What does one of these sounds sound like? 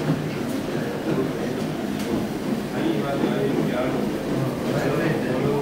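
A floor polishing machine whirs steadily and hums.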